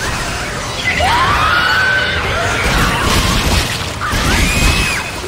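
A creature lets out shrill, wavering shrieks.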